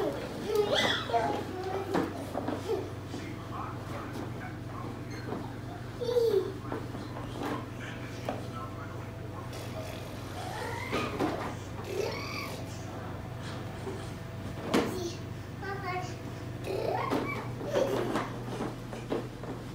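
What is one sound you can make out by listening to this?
Plastic wheels of a ride-on toy car rumble over the floor.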